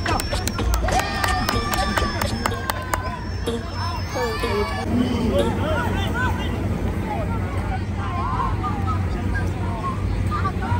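Young men shout to each other across a football pitch.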